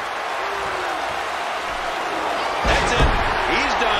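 A body slams down hard onto a wrestling ring mat.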